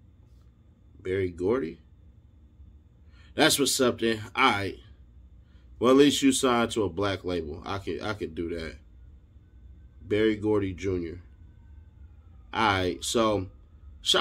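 A man speaks calmly and close up, in short bursts with pauses.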